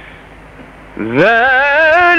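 An elderly man chants in a long, wavering melodic voice through a microphone.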